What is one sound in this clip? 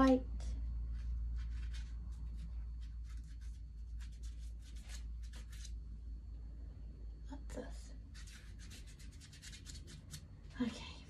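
A paintbrush taps and scratches lightly on paper.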